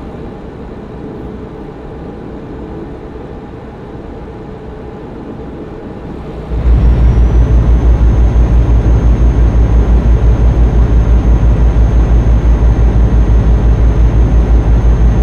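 A truck engine hums steadily, growing louder and throbbing.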